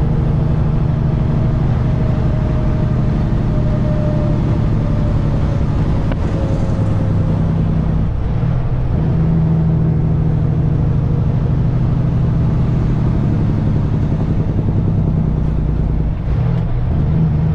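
A truck's diesel engine rumbles steadily inside the cab.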